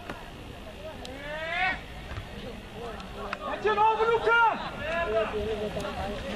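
Young men shout across an open field.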